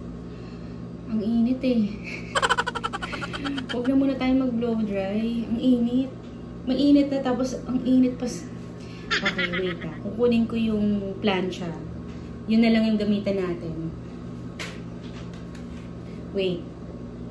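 A young woman talks close by, calmly and with animation.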